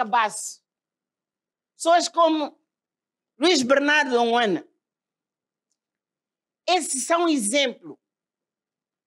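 An elderly woman speaks into a microphone in short, measured phrases, heard through loudspeakers.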